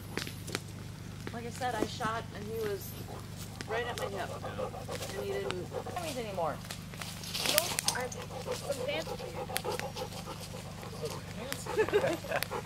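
Men laugh together nearby.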